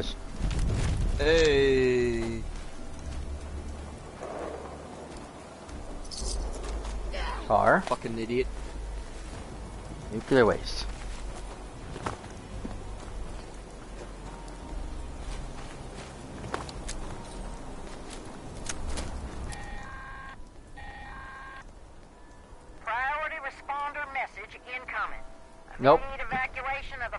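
Footsteps crunch on gravel and rubble.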